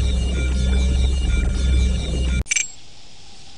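Light electronic music plays.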